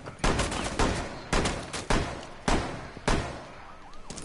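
Gunshots fire in a rapid series of loud bangs.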